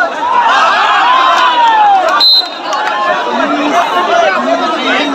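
A man shouts nearby.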